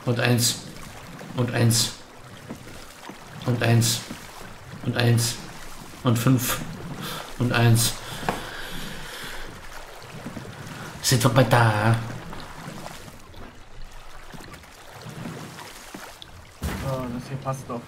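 Waves lap gently against a small wooden boat.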